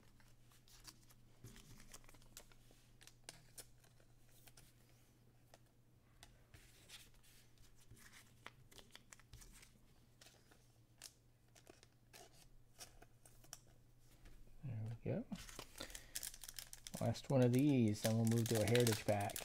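Trading cards rustle and slide as they are handled.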